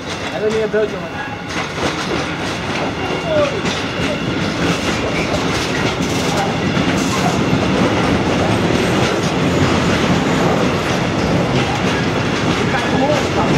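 Train wheels squeal faintly on the rails.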